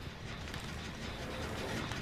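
A fire crackles softly in a barrel.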